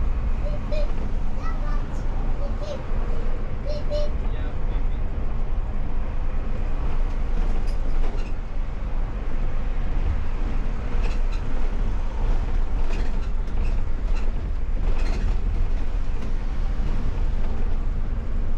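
The bus interior rattles and clatters over bumps.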